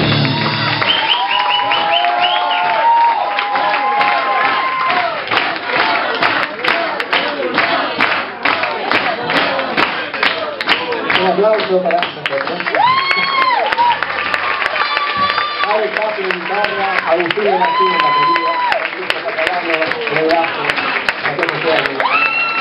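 An audience cheers and whistles.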